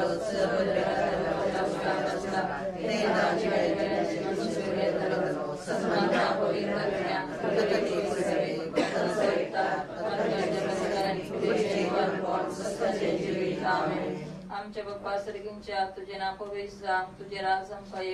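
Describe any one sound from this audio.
A group of women and men sing a slow hymn together.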